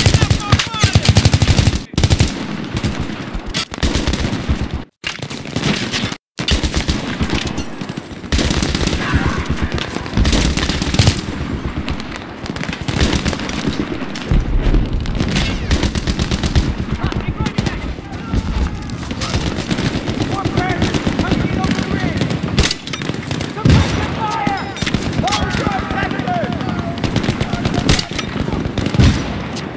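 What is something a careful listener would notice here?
Rapid rifle gunfire rattles in loud bursts.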